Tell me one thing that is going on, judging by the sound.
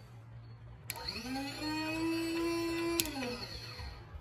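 A small electric motor whines up, runs briefly and winds down.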